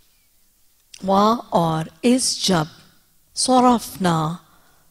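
A woman speaks slowly and melodically into a microphone, with pauses between phrases.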